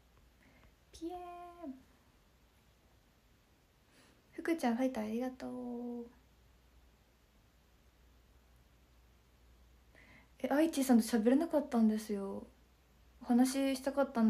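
A young woman speaks close to the microphone, in short bursts with pauses.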